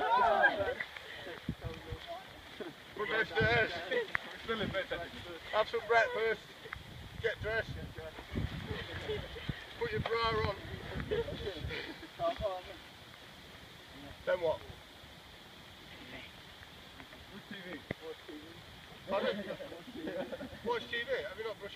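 A group of men and women talk and laugh together outdoors.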